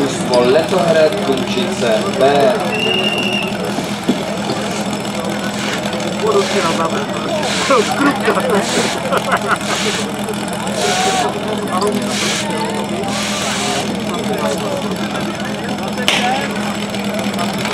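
A small engine idles steadily.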